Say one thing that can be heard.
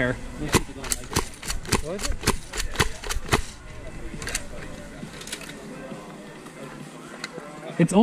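Paintball guns fire in quick popping shots nearby.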